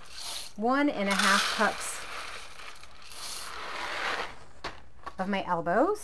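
Dry noodles drop into a pan of liquid.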